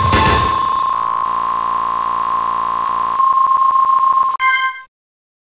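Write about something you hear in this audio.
A video game plays a rapid, steady electronic beeping.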